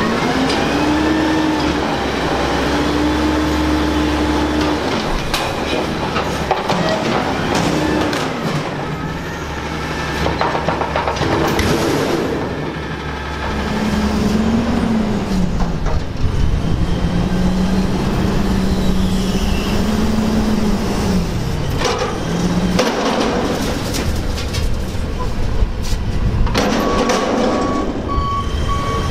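A garbage truck's engine rumbles steadily.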